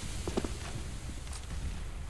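A rifle is handled with light metallic clicks.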